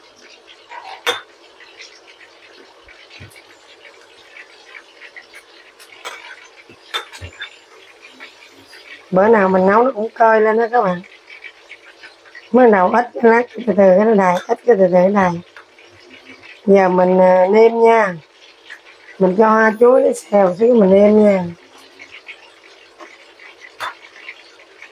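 A metal ladle scrapes and clinks against a pot.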